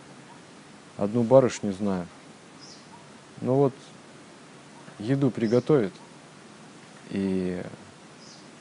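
A man speaks calmly and slowly, close by, in short phrases with pauses.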